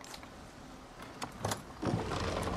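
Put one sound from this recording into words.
A lock clicks.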